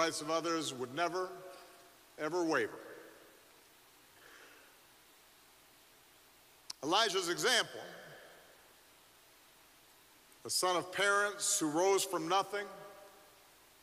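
A middle-aged man speaks slowly and deliberately into a microphone, with pauses, echoing in a large hall.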